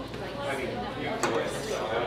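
Cutlery clinks on a plate.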